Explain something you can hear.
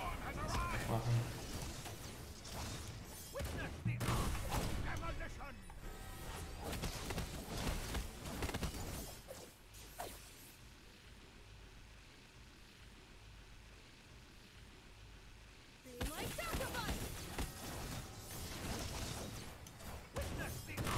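Battle effects clash and burst in quick bursts.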